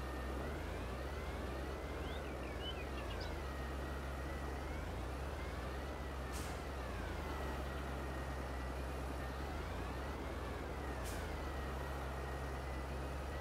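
A tractor's hydraulic loader whines as its arm rises and lowers.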